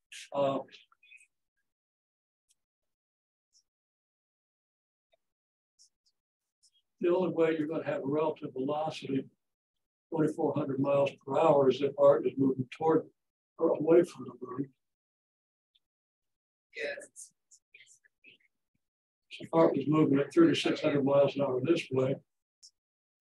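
A man speaks calmly, explaining in pauses, close by.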